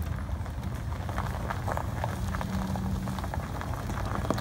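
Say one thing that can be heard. A golf cart motor hums as it drives slowly closer.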